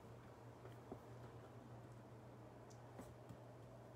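A pen writes on paper.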